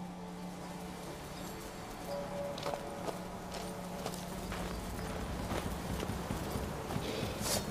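Footsteps crunch on snow and wooden boards.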